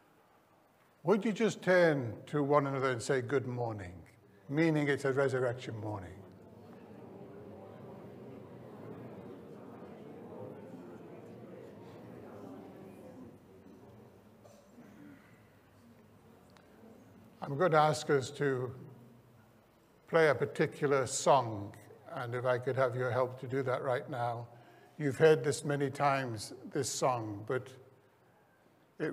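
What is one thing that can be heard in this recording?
An elderly man speaks calmly through a microphone in a large room.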